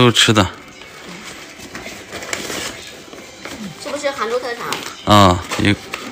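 Paper packaging rustles and crinkles.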